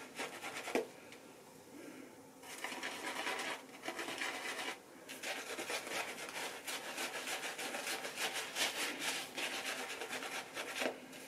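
A shaving brush swishes and lathers foam on stubble, close by.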